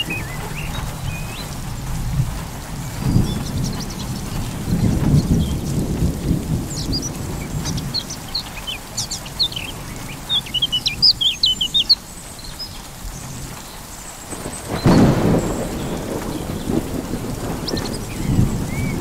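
Wind gusts across open ground outdoors.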